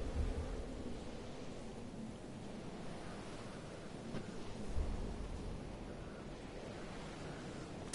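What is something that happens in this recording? A jetpack roars steadily.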